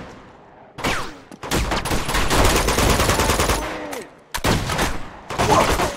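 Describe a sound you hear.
Rifle shots ring out in rapid bursts.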